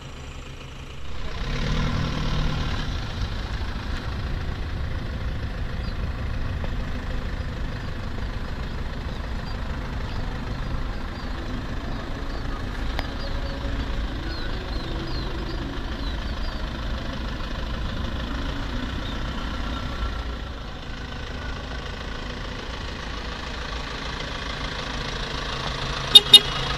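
A car engine rumbles as the car drives slowly past and approaches.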